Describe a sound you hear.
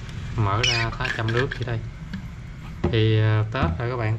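A lid is unscrewed from a metal flask with a scraping turn.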